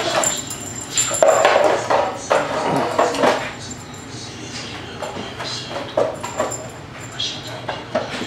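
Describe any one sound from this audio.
A dog's paws patter on a hard floor.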